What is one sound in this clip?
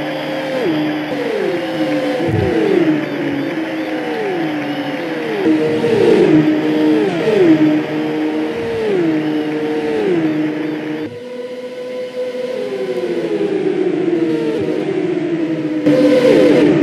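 Racing car engines whine loudly, shifting gears again and again.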